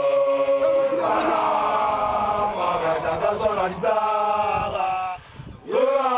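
A group of young people sings loudly together outdoors.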